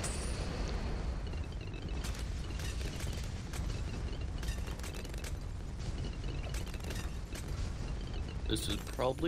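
Low rumbling blasts rumble steadily.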